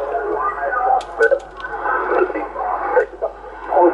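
A radio tuning knob clicks as it turns.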